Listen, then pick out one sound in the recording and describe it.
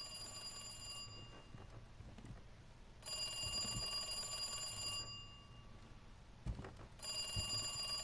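An old telephone rings in long, repeated bursts.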